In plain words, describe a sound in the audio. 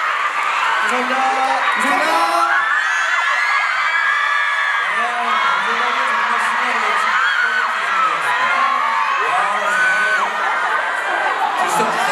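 A young man speaks loudly through a microphone.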